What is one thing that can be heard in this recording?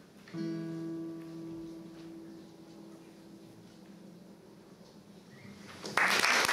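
A classical guitar plays a final chord that rings out and slowly fades.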